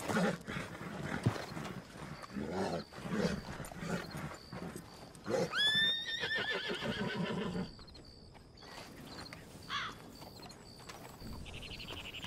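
Horses' hooves thud on a dirt track.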